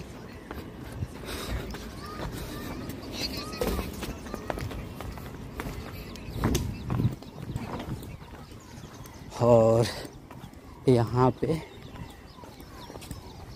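Footsteps scuff on a gritty path.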